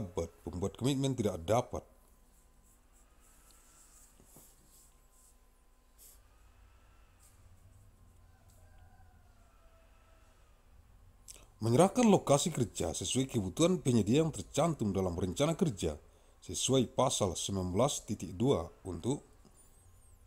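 A man reads out calmly through a microphone.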